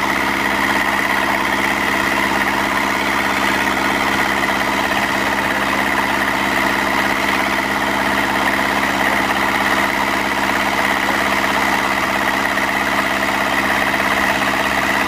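Water sprayers hiss steadily in the distance, outdoors.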